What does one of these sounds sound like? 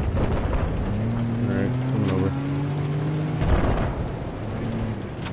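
A heavy engine drones and rumbles steadily.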